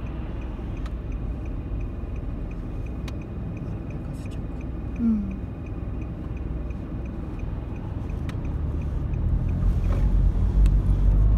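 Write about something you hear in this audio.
A car engine idles with a low rumble, then grows louder as the car pulls away.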